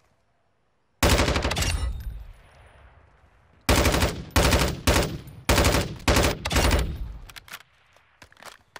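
Rapid bursts of rifle gunfire crack and echo.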